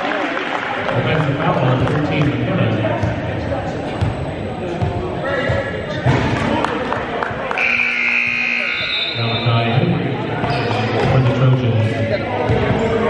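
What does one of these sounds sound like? Players' voices call out and chatter in a large echoing gym.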